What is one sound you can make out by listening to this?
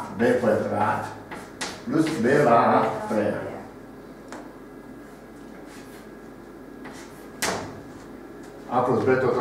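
An elderly man speaks calmly, as if teaching.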